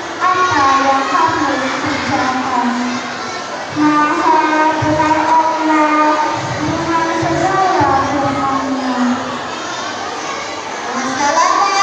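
A young girl recites in a sing-song voice through a microphone.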